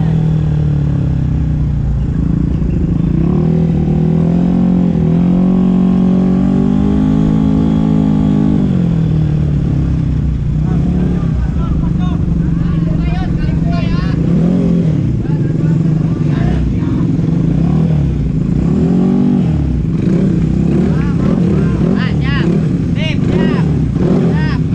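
A motorcycle engine idles and revs up and down close by.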